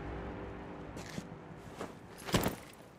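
Heavy armoured footsteps thud on a stone floor.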